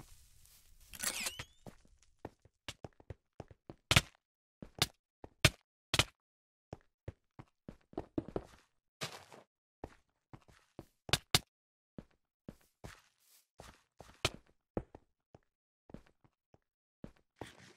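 Sword blows strike with sharp, quick hits.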